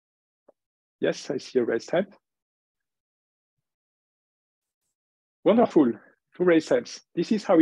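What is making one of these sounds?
A man speaks calmly into a microphone, as if lecturing.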